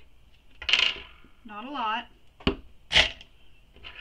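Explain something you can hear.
A plastic jar knocks down onto a table.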